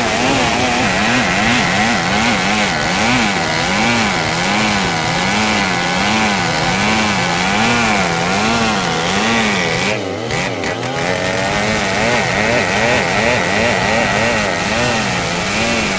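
A chainsaw under load rips lengthwise through a log, its engine pitch wavering.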